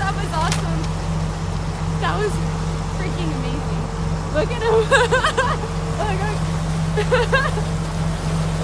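A young woman laughs and talks excitedly close by.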